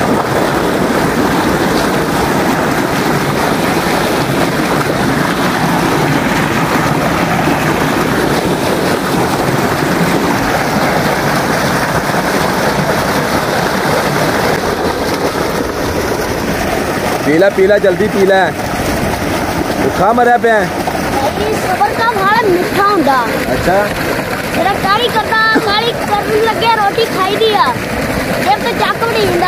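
Water gushes loudly from a pipe and splashes into a pool.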